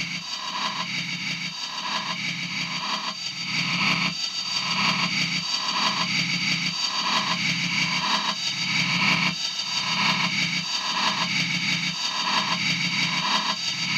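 An electronic sound module plays a repeating, pulsing synth pattern.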